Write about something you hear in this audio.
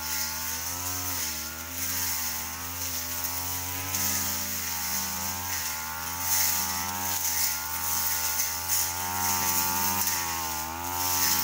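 A brush cutter slashes through grass and weeds.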